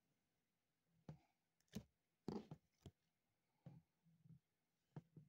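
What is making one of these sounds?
A plastic card sleeve crinkles and taps as fingers handle it.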